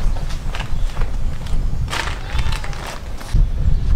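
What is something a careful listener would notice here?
A plastic bag rustles as it is carried.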